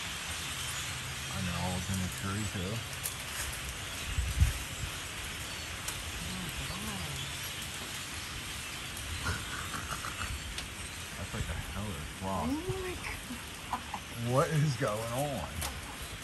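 Many wings whir as a flock of birds flies past.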